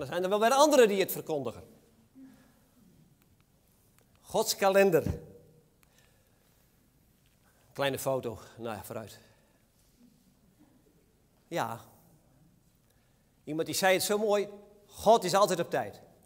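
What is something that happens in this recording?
A man preaches into a microphone in measured phrases with long pauses, in a room with some echo.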